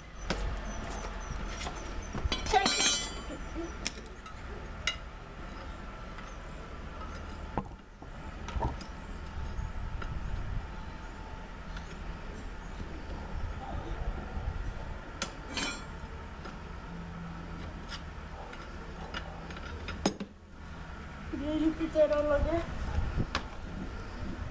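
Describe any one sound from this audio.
A metal tool clicks and scrapes against a metal housing.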